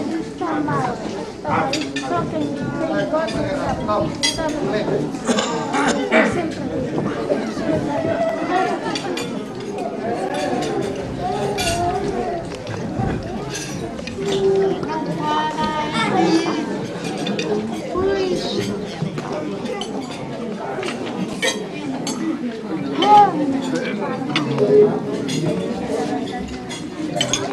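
A crowd of men and women chatters loudly in an echoing hall.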